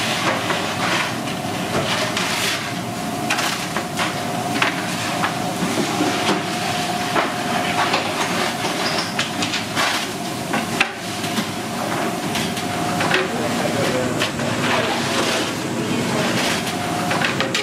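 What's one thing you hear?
A wooden peel scrapes across a stone oven floor.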